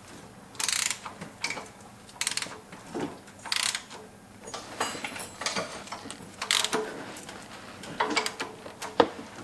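A ratchet wrench clicks rapidly as a bolt is turned.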